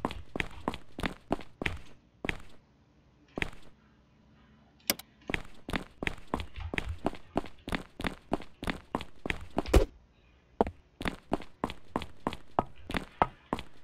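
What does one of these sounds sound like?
Quick footsteps tap on a hard floor.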